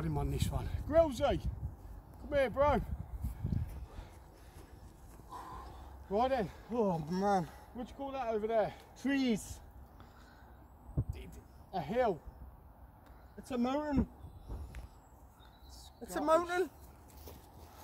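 A man talks with animation outdoors, close by.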